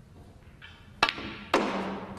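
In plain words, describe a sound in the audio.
A cue sharply strikes a ball.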